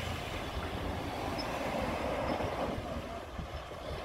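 Motorcycles rumble past.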